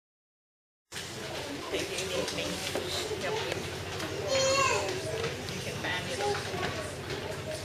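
Children chatter softly in a large room.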